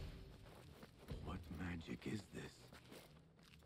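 A man speaks in a low, wondering voice.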